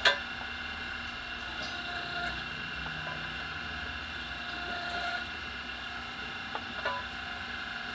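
Metal clicks and clinks now and then against the rim.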